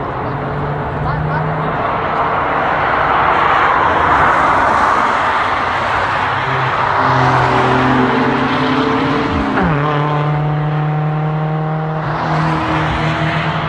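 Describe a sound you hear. Car engines hum and drone steadily as vehicles drive past outdoors.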